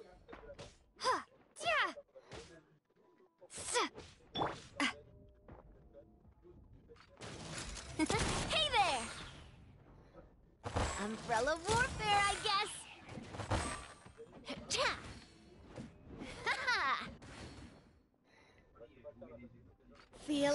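Swords clash and strike repeatedly.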